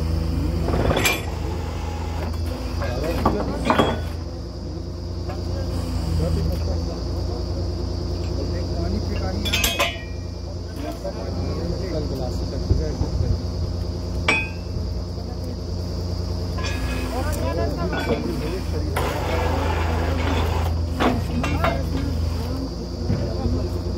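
A drilling rig's diesel engine runs with a steady low rumble outdoors.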